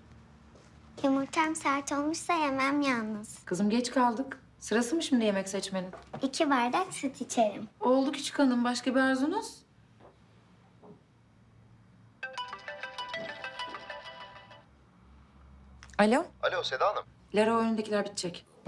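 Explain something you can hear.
A young woman speaks firmly, close by.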